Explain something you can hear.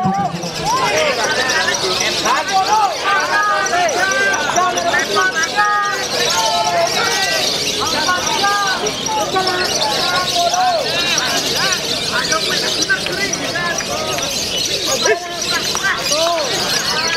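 Many small birds chirp and twitter busily close by.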